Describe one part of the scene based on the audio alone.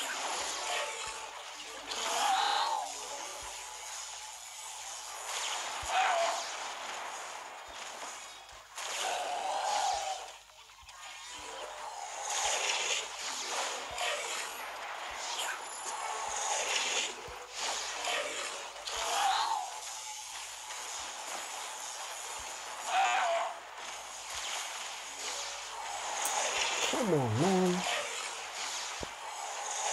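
Game sound effects pop, zap and burst as plants fire at zombies.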